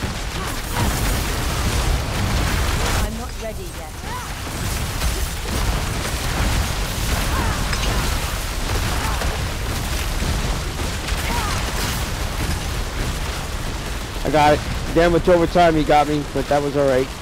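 Icy blasts and magic bursts crackle and whoosh over and over.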